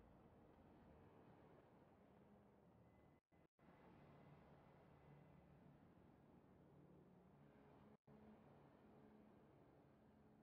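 A car engine hums as a car drives by.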